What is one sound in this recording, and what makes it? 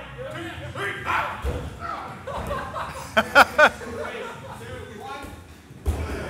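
A body lands with a heavy thud on a padded floor.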